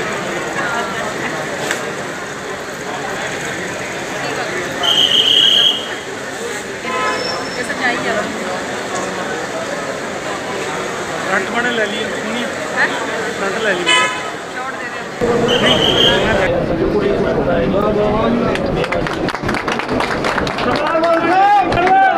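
A large crowd of men and women talks and shouts all at once, in an echoing hall.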